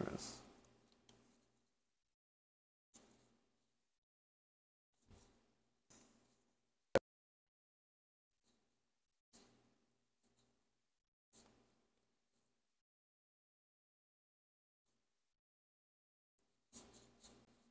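Playing cards rustle and slide softly against each other in hands.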